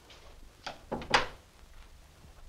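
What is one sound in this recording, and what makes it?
A door shuts with a loud thud.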